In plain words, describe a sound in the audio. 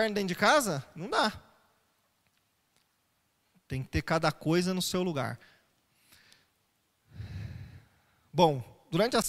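A man speaks with animation, in short phrases with pauses, close to a microphone.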